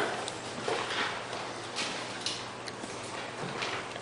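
A microphone thumps and rustles as a man handles it.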